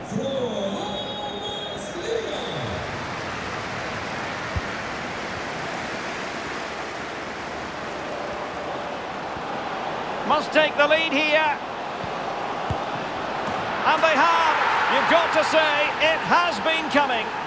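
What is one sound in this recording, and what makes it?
A stadium crowd roars steadily, swelling louder near the end.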